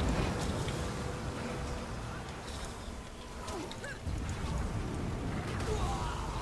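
Magic spell effects whoosh and crackle in a video game fight.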